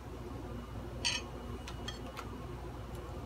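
Small metal parts click and tick under fingers.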